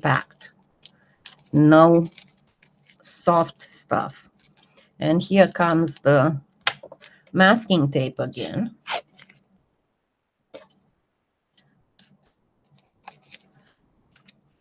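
Aluminium foil crinkles between fingers.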